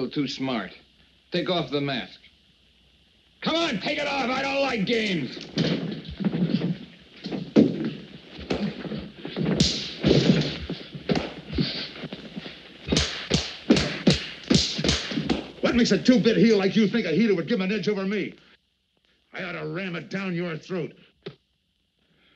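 A man speaks tensely and threateningly.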